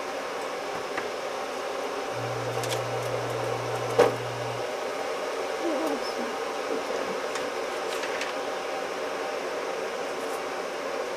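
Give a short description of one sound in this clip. Small wooden pieces knock and clack against a wooden board.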